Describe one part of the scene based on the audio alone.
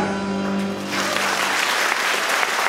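A jazz band holds a final chord that ends.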